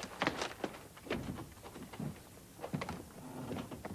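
A man's footsteps thud up wooden steps.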